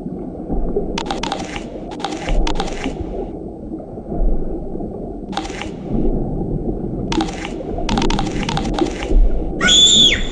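A shark bites and crunches fish in quick bursts.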